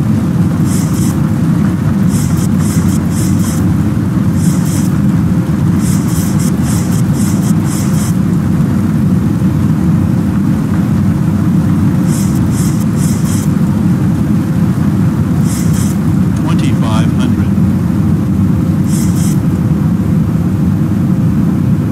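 Rain patters on an aircraft windshield.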